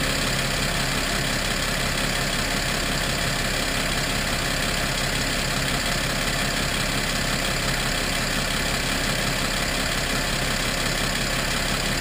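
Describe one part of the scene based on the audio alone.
A drive belt whirs and rattles over a spinning pulley.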